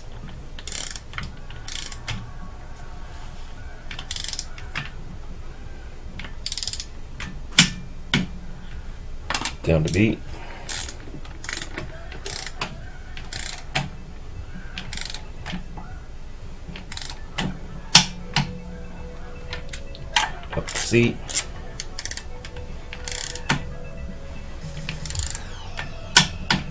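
Metal tools clink and knock against an engine.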